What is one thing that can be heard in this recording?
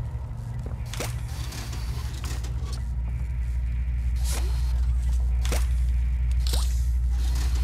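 A mechanical grabber hand shoots out and snaps back with a whooshing swish.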